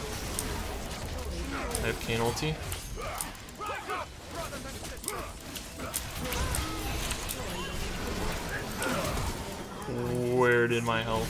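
Spell blasts and magical whooshes burst rapidly in a game battle.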